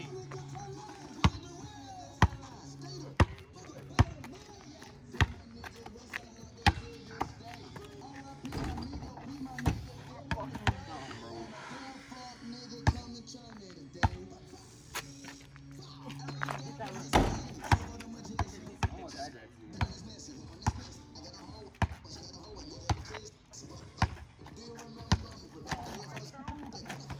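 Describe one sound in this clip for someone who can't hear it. A basketball bounces sharply on pavement, over and over.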